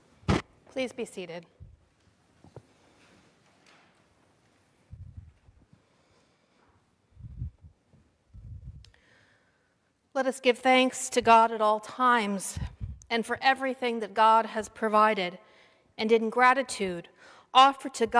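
A woman speaks calmly and clearly through a microphone in an echoing hall.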